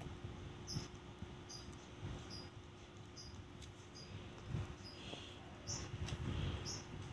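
A toddler crinkles a plastic snack wrapper.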